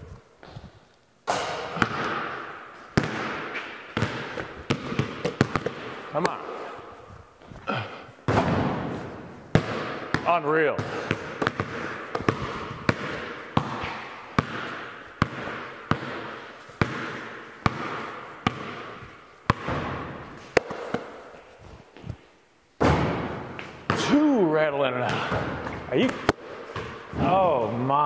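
Basketballs bounce on a hard floor with sharp thuds.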